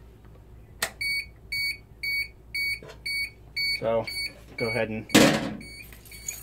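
An alarm panel beeps in short, even, repeated pulses.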